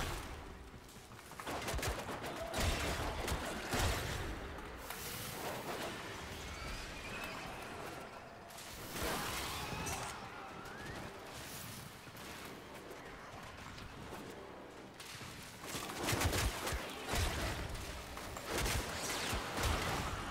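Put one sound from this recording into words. Blades whoosh and slash in quick swings.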